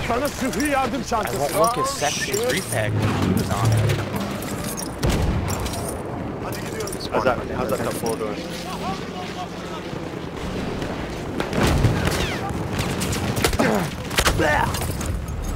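Rifle shots crack in bursts.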